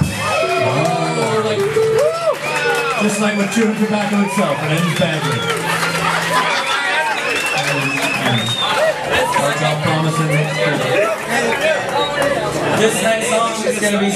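Electric guitars strum and pick along with the band.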